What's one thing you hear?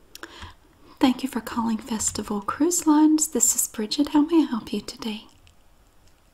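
A woman speaks calmly into a headset microphone, close by.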